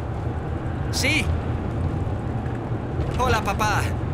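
A young man speaks tensely into a phone.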